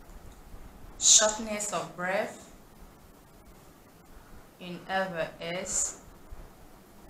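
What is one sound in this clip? A young woman speaks calmly and close to a microphone, in short phrases with pauses.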